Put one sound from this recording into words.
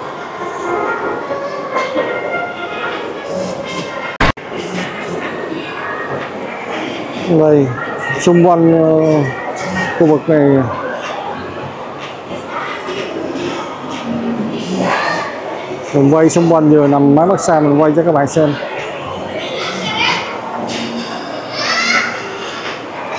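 Distant voices murmur in a large echoing hall.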